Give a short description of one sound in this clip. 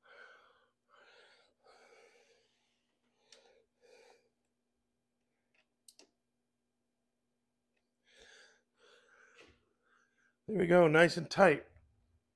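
Cables and clamps click and rattle faintly.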